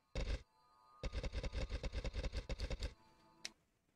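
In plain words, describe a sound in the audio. Game menu clicks tick rapidly in a quick series.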